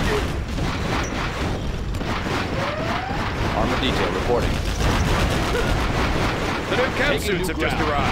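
Tank engines rumble and clank.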